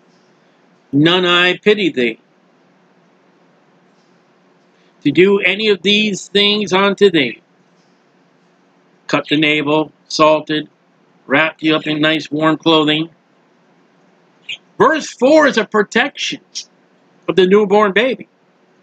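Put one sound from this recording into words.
A man speaks calmly into a microphone, reading out in short phrases with pauses.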